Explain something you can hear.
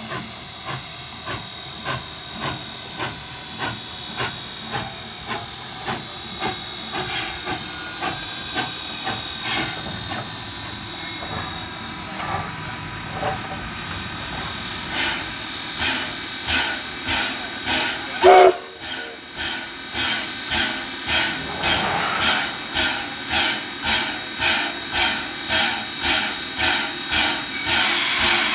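A 2-8-0 steam locomotive chuffs as it pulls slowly along.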